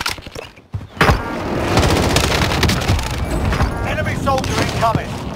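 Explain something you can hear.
A rifle fires in quick bursts of sharp cracks.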